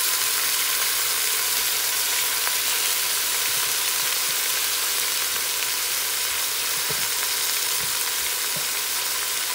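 Chicken sizzles steadily in a hot pot.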